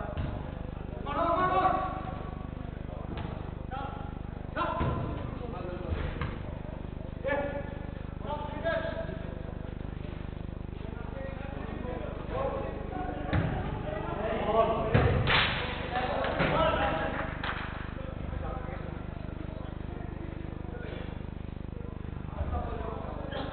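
Men shout to each other across a large echoing indoor hall.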